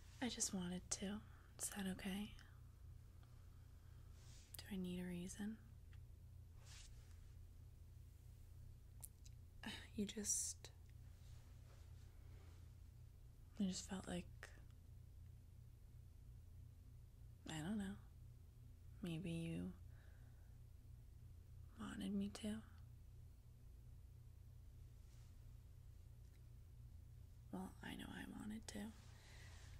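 A young woman speaks close to a microphone in short, calm phrases with pauses between them.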